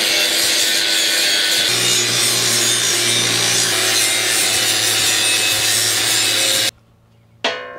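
An angle grinder whines loudly as it grinds steel.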